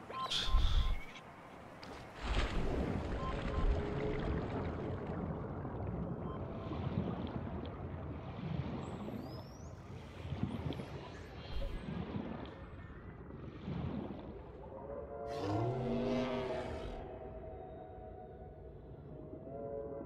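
Water murmurs in a low, muffled rush underwater.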